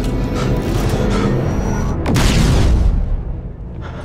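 A lightsaber hums and buzzes loudly.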